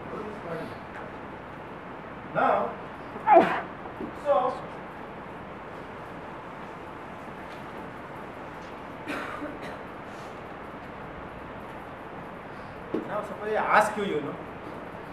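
A middle-aged man speaks in short bursts, lecturing with pauses in a slightly echoing room.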